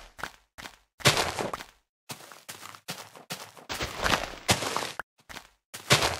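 Leaves rustle and crunch as they are broken.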